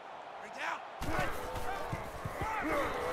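Football players crash into each other with dull thuds.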